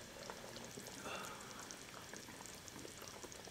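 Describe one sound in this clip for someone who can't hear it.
A young woman gasps in surprise close by.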